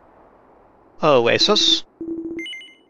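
A bright chiming jingle rings out once.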